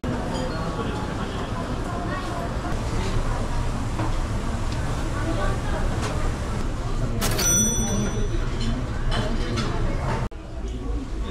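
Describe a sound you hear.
A crowd of diners chatters in a busy, echoing room.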